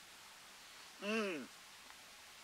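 A man makes a short vocal sound.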